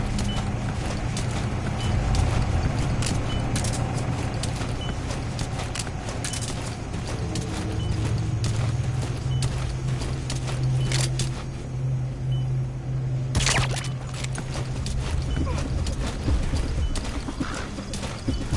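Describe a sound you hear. A soldier crawls through grass with soft rustling.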